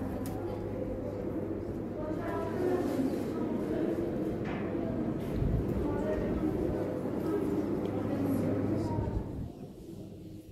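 Women and children murmur and talk softly nearby.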